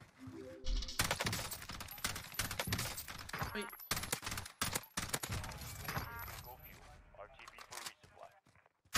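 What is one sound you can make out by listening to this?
Rifle shots crack in sharp bursts.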